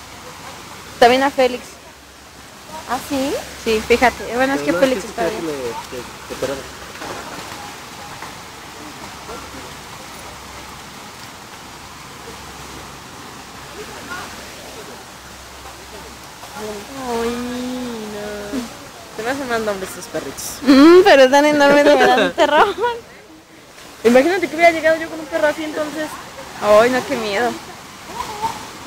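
A woman talks close by with animation.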